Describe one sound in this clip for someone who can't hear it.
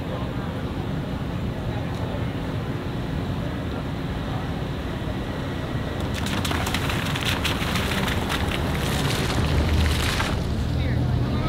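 A car rolls closer over cobblestones and passes nearby.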